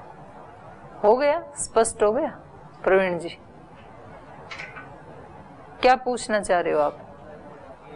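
A middle-aged woman speaks calmly into a microphone, in short phrases with pauses.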